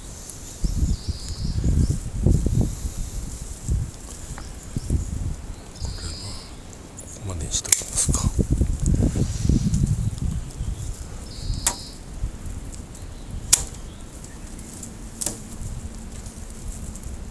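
Pruning shears snip through thin stems.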